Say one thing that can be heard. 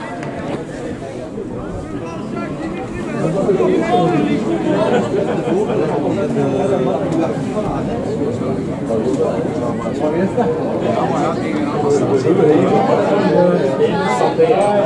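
Men shout and call to each other across an open field outdoors.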